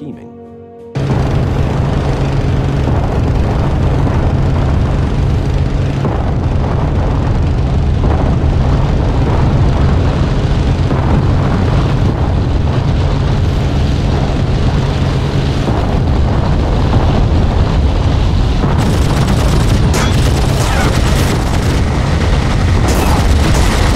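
A propeller engine drones loudly and steadily.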